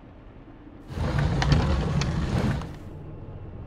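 A child clambers noisily onto wooden shelves.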